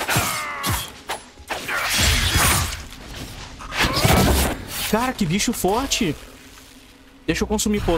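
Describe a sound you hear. A magic blast bursts with a whoosh.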